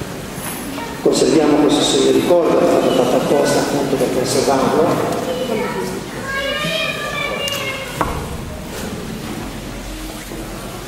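A middle-aged man speaks with animation into a microphone over loudspeakers in a large echoing hall.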